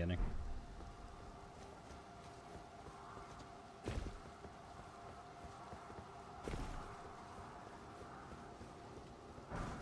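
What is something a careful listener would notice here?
Footsteps crunch steadily over rocky ground.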